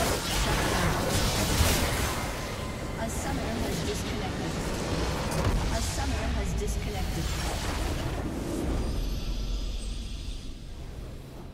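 Loud battle effects crash and explode in a video game.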